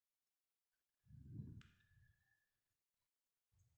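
A thread rasps as it is pulled tight through leather.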